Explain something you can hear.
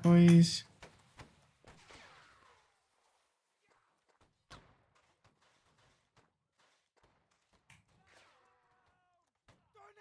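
Musket shots crack in short bursts.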